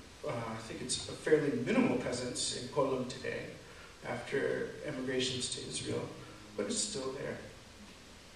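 A man speaks calmly through a microphone.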